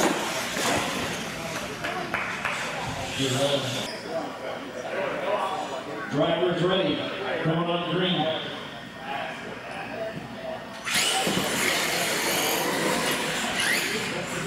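Small electric motors whine as toy trucks race across a hard floor.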